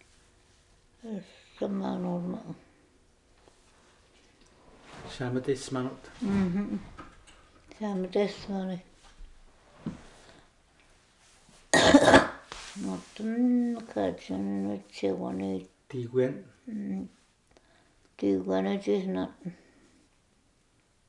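An elderly woman speaks calmly and close by, in short bursts with pauses.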